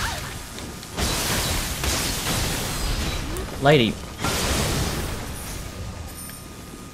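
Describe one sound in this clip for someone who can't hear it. Blades slash and clang in a fierce sword fight.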